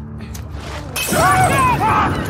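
A glass bottle shatters.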